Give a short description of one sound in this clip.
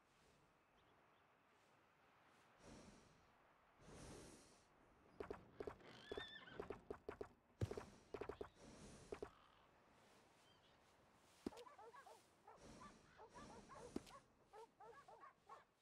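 Soft menu clicks tick as a selection moves up and down a list.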